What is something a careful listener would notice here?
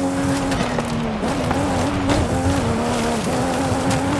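Tyres crunch and skid over rough dirt.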